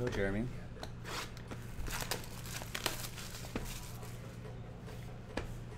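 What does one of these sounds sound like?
Plastic wrap crinkles and tears as it is pulled off a box.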